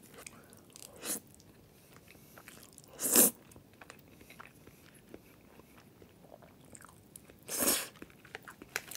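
A young man slurps noodles loudly, close to the microphone.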